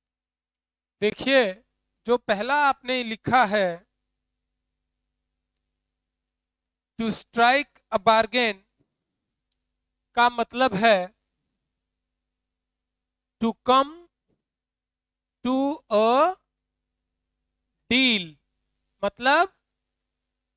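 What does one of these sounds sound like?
A young man speaks clearly into a microphone, explaining in bursts with pauses.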